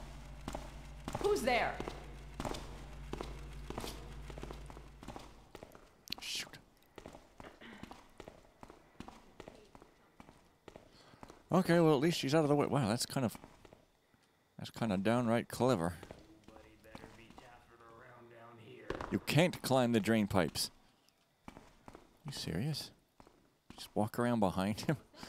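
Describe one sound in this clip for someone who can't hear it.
Footsteps tread softly on cobblestones.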